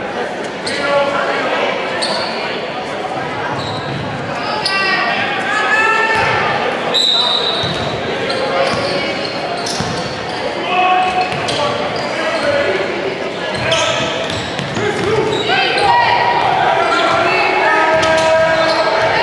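A crowd of spectators cheers and shouts in a large echoing gym.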